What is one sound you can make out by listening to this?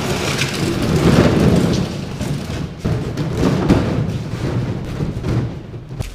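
Plastic jugs thump as they are tossed into a truck bed.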